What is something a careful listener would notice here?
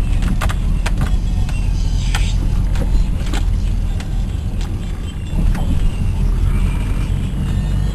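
Windshield wipers swish back and forth.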